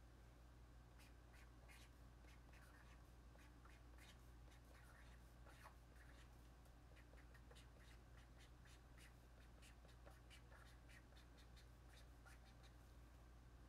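A young woman whispers softly, very close by.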